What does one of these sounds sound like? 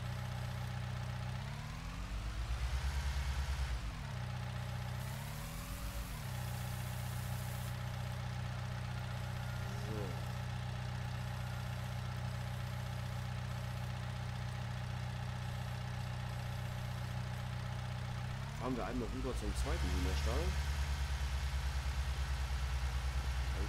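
A diesel engine of a small loader hums steadily and revs up and down.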